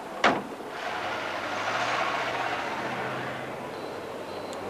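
A car engine rumbles.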